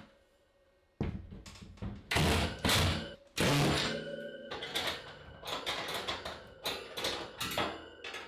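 Metal wire shelving rattles as it is lifted onto its brackets.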